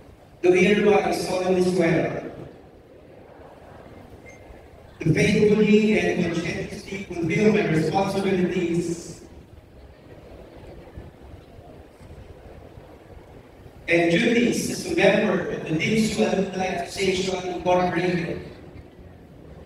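A crowd of young men and women recites loudly in unison.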